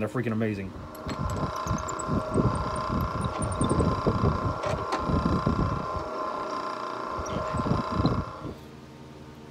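A drill press whirs steadily as it bores into wood.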